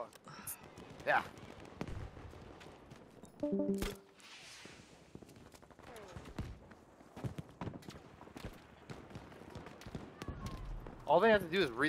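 Gunshots crack in the distance, on and off.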